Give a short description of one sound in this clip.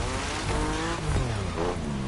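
Tyres screech on pavement.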